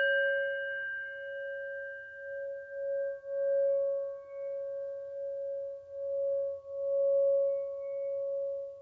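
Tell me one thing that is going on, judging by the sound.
A wooden stick rubs around the rim of a singing bowl, making the tone swell and pulse.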